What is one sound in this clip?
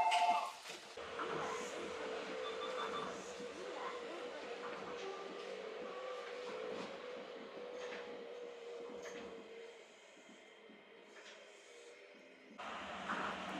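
A train rumbles and whines steadily as it pulls out of a station.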